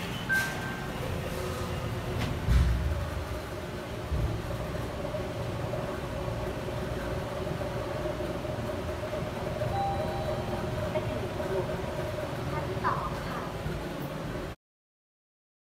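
An elevator hums steadily as it rides between floors.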